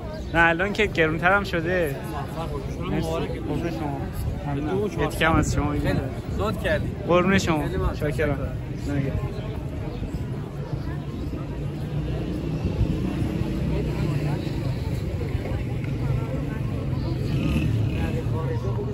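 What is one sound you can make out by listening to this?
A crowd murmurs in the background outdoors.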